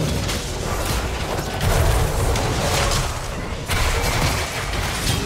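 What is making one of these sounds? Game spell effects crackle and clash in a fast fight.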